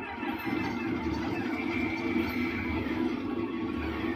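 Video game battle effects crackle and burst.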